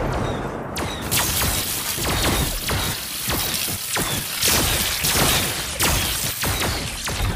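Electric bolts crackle and zap in rapid bursts.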